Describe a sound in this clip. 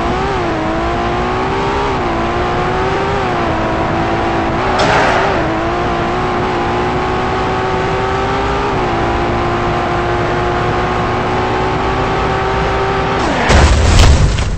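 A car engine hums steadily and revs up as the car speeds along.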